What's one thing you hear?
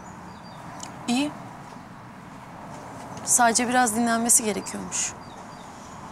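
A young woman answers calmly and quietly.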